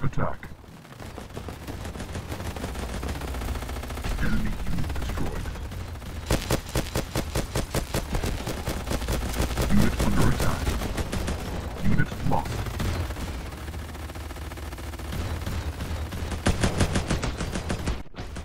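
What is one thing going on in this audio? Rapid laser guns fire in long bursts.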